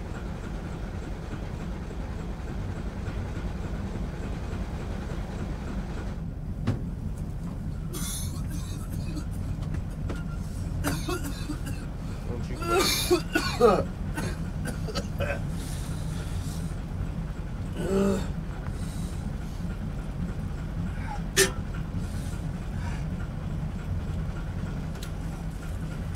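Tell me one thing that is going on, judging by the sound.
A boat engine rumbles low and steadily.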